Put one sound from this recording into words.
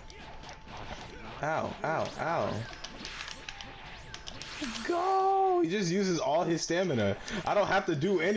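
Energy blasts whoosh and crackle in a video game.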